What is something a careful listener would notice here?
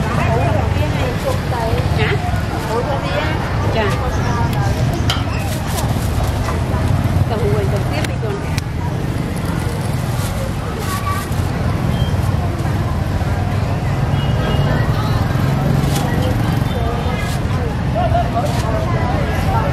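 A crowd chatters loudly all around, outdoors.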